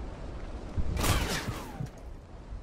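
A gunshot cracks loudly nearby.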